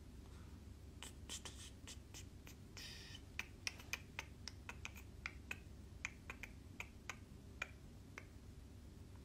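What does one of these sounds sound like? Fingernails tap and click on a phone.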